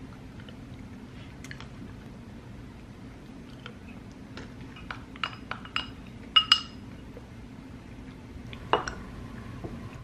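A metal spoon clinks against a glass.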